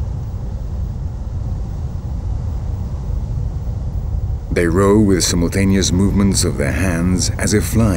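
Water rushes and rumbles low underwater.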